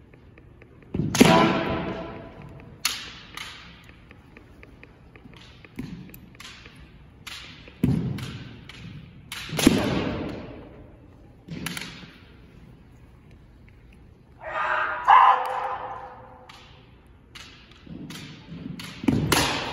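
Fencers shout loudly in a large echoing hall.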